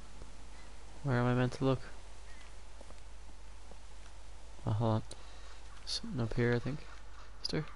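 A man speaks in short, calm phrases close by.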